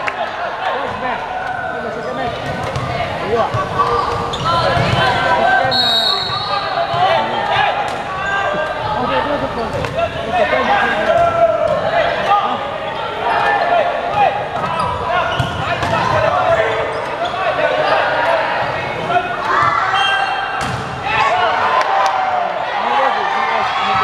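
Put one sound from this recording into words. A volleyball thumps off hands and arms.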